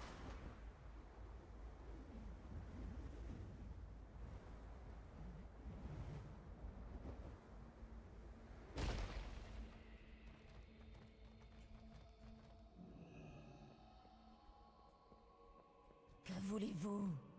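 A young woman talks quietly into a close microphone.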